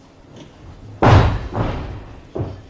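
Coins clatter and scatter across a wooden floor.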